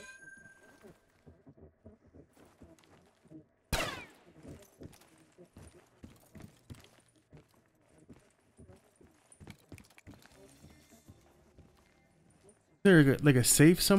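Footsteps patter quickly across a floor.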